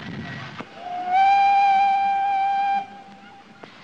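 A train whistle blows a long steady note.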